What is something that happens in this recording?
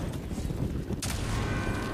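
A fiery explosion bursts with a loud crackling blast.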